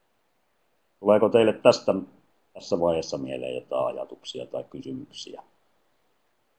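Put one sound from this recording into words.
A man speaks calmly through a headset microphone in an online call.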